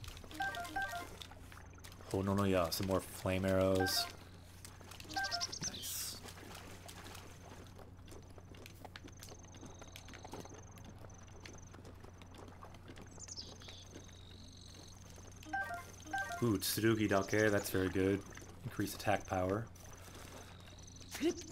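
Light footsteps patter on grass and stone.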